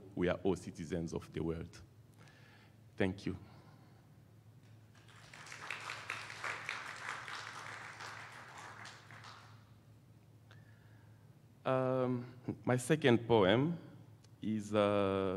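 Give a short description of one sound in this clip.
A man speaks through a microphone in a large echoing hall, pausing now and then.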